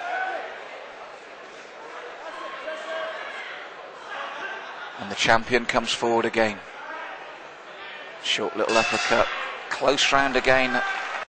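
A crowd murmurs and cheers loudly in a large hall.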